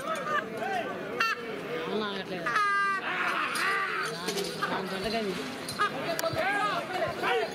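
Several men shout and call out loudly outdoors.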